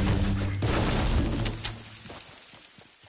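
Gunshots fire in a loud, rapid burst.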